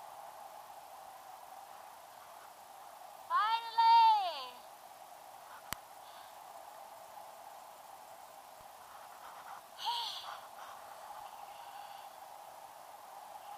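Wind rushes steadily past outdoors.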